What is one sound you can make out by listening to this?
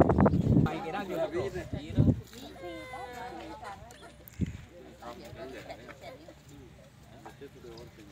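Children chatter and talk nearby.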